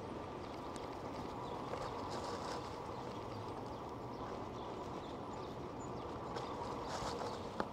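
Tyres of an electric bike roll over dry leaves and grass.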